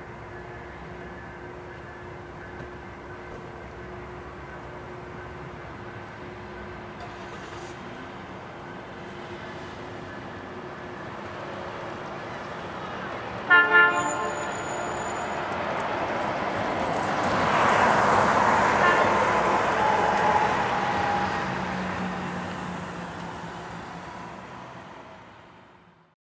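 A train approaches and rumbles past, growing louder then fading.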